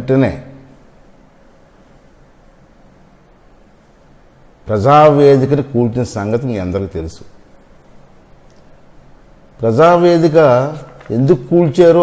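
A middle-aged man speaks steadily and earnestly into a close microphone, with pauses.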